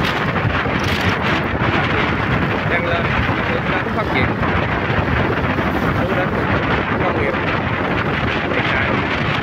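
Wind buffets a microphone loudly and steadily.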